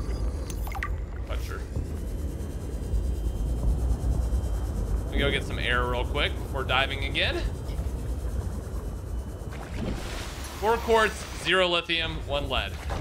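A small underwater vehicle hums with a low, steady rumble.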